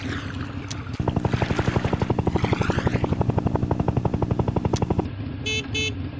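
A cartoon helicopter's rotor chops with a fast, steady beat.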